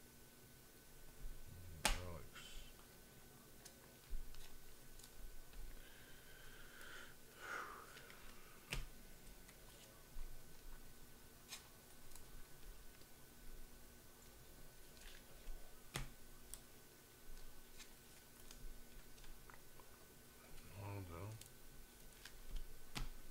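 Plastic card sleeves crinkle and tap as cards are handled close by.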